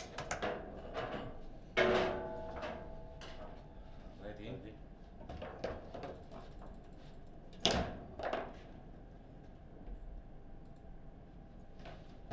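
Metal rods slide and rattle as players spin and jerk them.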